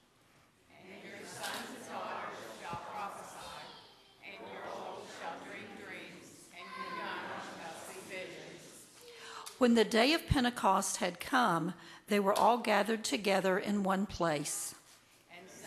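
A congregation reads aloud together.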